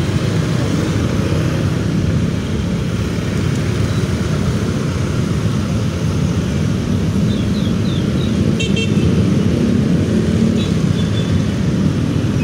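Motorcycles rev and pull away nearby.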